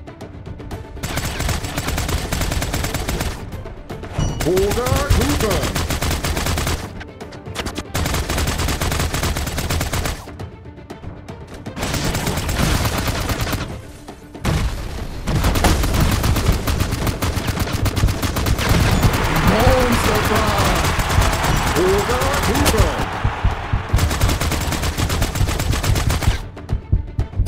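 Rapid gunfire rattles in repeated bursts.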